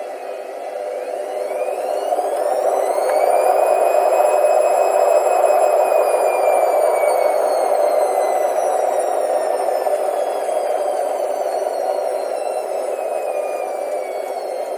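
A washing machine motor whines, rising in pitch as the spin speeds up, then slowly falling.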